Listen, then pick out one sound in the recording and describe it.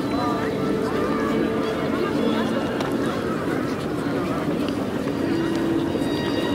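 A crowd of people chatter across a wide open square outdoors.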